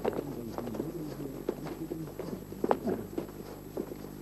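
Footsteps shuffle softly on sand.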